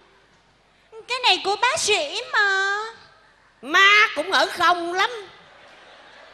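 A young woman speaks through a microphone.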